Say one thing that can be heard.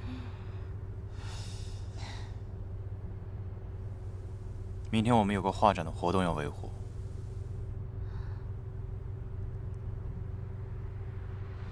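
A car engine hums low and steady from inside the car.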